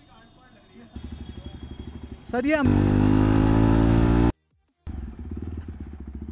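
A motorcycle engine thumps steadily up close.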